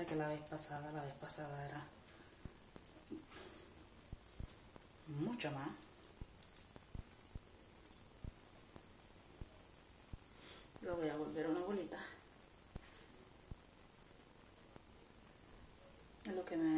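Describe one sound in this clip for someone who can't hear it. A middle-aged woman speaks calmly close by, in short bursts.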